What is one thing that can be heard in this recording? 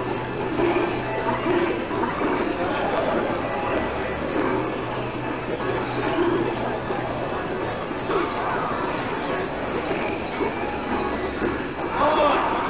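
Several young men talk and chatter with animation nearby.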